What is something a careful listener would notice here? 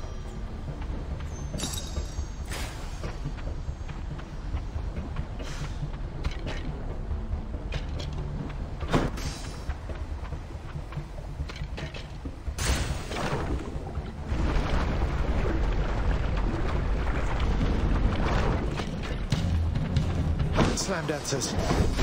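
Low, brooding music plays steadily.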